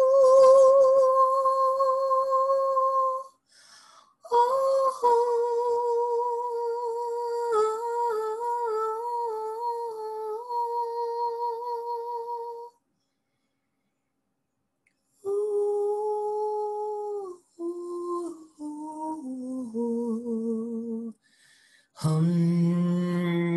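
A woman sings long, sustained vowel tones close to a microphone.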